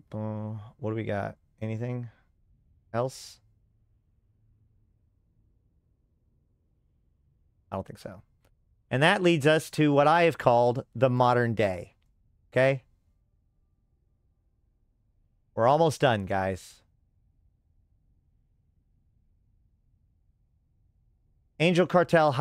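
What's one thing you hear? A man talks casually into a close microphone, in short bursts with pauses.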